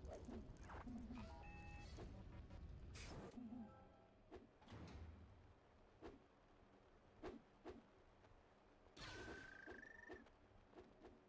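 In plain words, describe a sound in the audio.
Video game pickups chime as they are collected.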